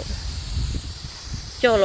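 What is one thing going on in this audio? Water sprays onto plants with a soft hiss.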